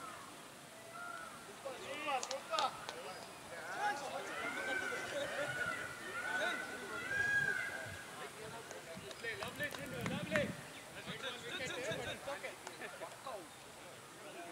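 Men talk and call out across an open field.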